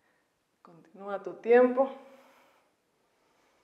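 A young woman speaks calmly, giving instructions, in an echoing room.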